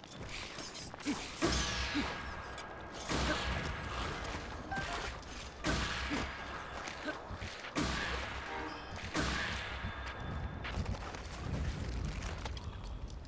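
Sword swings and clashing hits ring out in a game battle.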